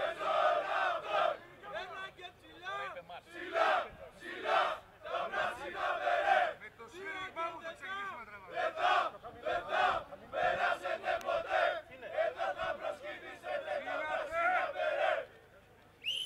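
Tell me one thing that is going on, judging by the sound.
A group of men shout and grunt with effort outdoors.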